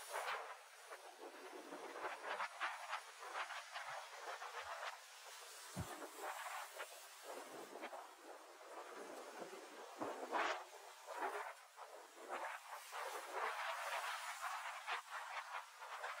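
Choppy water sloshes and laps steadily, outdoors.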